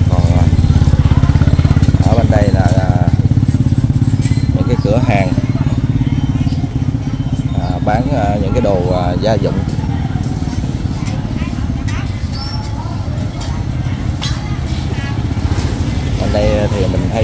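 A motorbike engine putters steadily at low speed.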